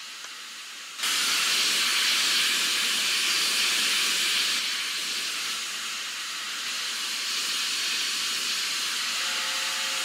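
A steam locomotive hisses loudly as it lets off steam.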